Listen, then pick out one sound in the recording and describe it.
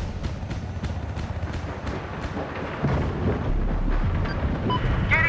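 A helicopter's rotor thumps steadily with a low engine rumble.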